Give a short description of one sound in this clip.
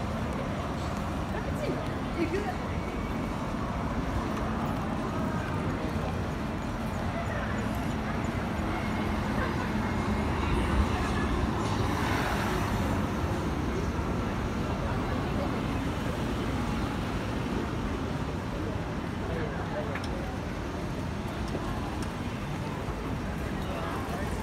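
Busy city street noise fills the air outdoors at night.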